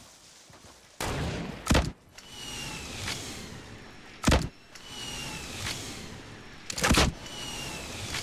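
Video game gunshots crack out.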